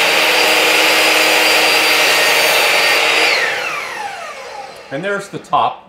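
A miter saw blade spins with a loud, steady whine, then winds down and fades.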